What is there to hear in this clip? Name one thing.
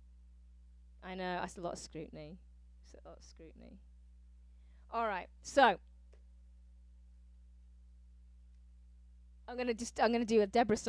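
A woman speaks close to a microphone with animation.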